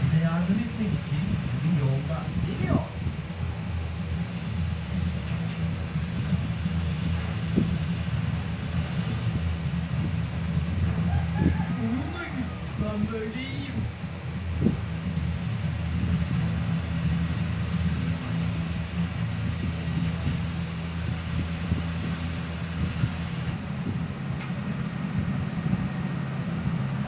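A helicopter engine hums steadily with a low drone.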